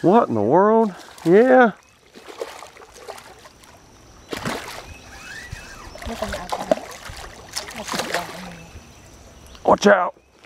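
A fish splashes and thrashes in the water close by.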